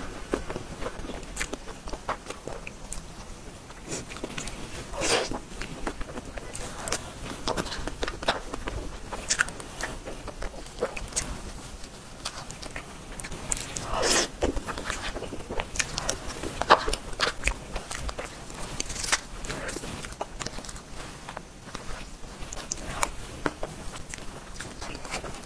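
A young woman eats, with close, wet chewing and smacking sounds.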